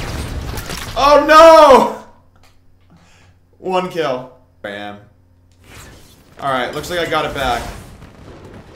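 A young man talks loudly and with animation into a close microphone.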